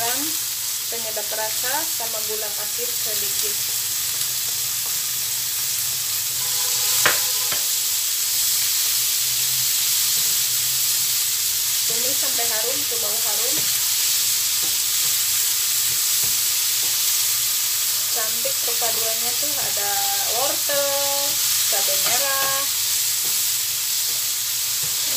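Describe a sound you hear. Food sizzles loudly in a hot frying pan.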